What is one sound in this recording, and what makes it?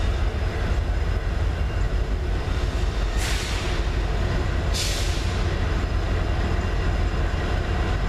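Diesel freight locomotives rumble as they approach.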